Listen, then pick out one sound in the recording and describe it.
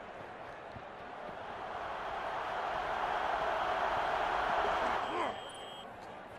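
A stadium crowd roars louder during a play, then cuts off sharply.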